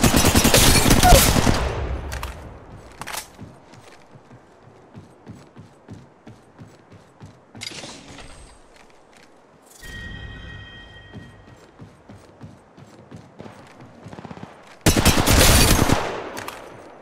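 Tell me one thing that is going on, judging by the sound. Gunfire bursts loudly in rapid shots.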